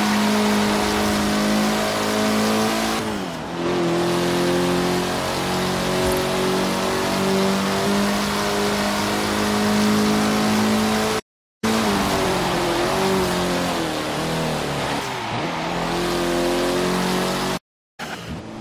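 A car engine roars loudly at high revs, shifting gears as it speeds up.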